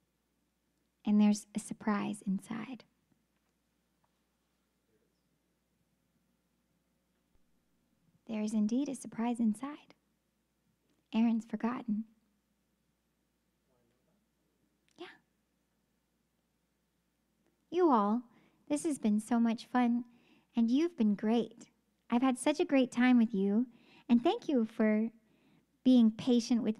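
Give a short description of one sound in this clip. A young woman speaks into a close microphone with animation, in bursts with pauses.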